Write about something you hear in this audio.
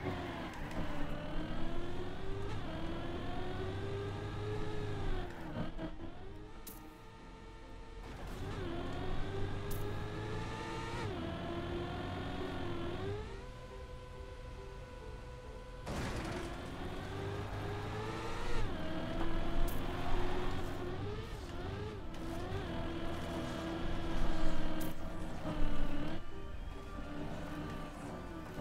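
A racing car engine whines, revving up and down as it changes gear.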